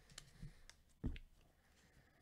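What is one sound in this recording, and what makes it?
A hard plastic case knocks down onto a surface.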